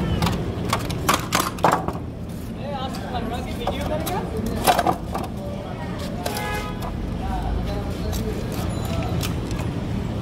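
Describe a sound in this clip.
A fish is sliced against a metal blade with wet scraping sounds.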